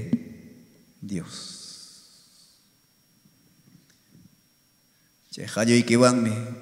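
A man speaks into a microphone with emphasis, his voice carried through loudspeakers.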